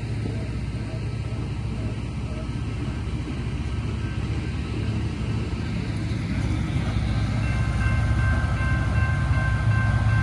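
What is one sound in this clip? A heavy work train rumbles steadily past close by.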